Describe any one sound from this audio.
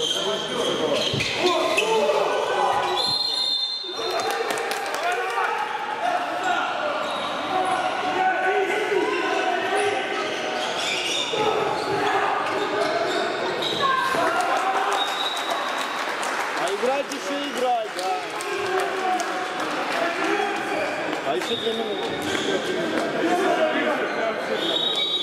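Male players shout to one another across the court.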